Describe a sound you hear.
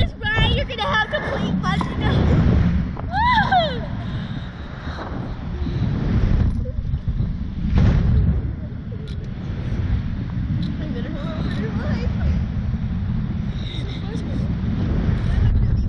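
Young children laugh and squeal with excitement.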